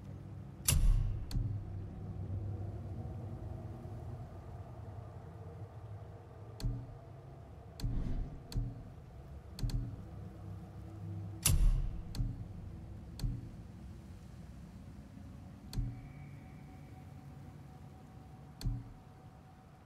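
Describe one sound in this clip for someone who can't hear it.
Game menu sounds click and whoosh as selections change.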